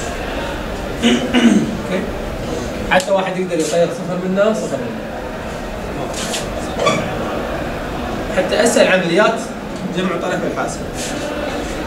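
A man explains something in a calm, lecturing voice.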